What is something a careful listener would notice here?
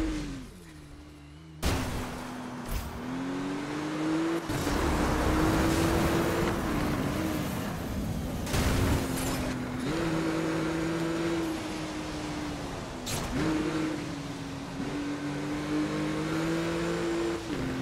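A car engine roars and revs, rising and falling as gears change.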